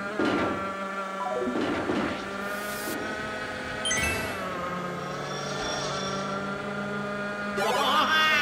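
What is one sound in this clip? A go-kart engine hums steadily.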